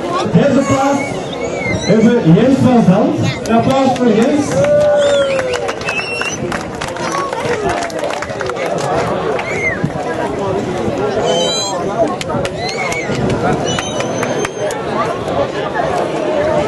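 A crowd of people clap.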